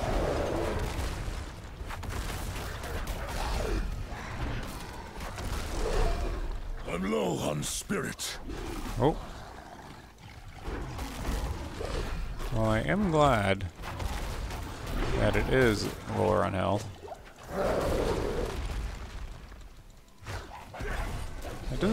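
Heavy blows and crunching impacts land in a fierce fight.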